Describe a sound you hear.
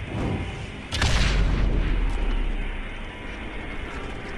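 A gas cloud bursts into flame with a deep roaring whoosh.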